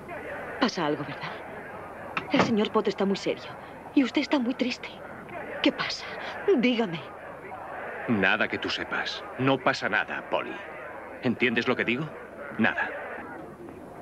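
A woman speaks pleadingly and with emotion, close by.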